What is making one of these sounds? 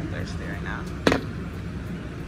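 A glass knocks down onto a hard counter.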